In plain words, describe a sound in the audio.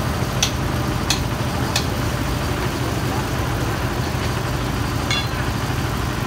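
A metal wrench clicks and clinks against a metal part.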